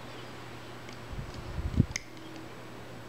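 Fingers rustle and click against small plastic pegs.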